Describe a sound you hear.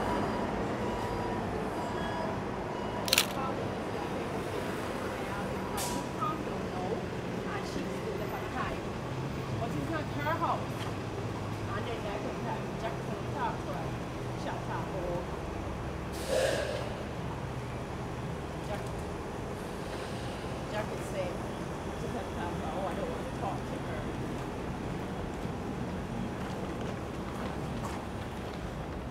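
A steady hum of city traffic carries outdoors along a street.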